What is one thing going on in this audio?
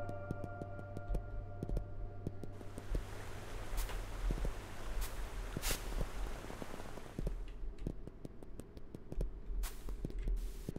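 Game sound effects chime and blip.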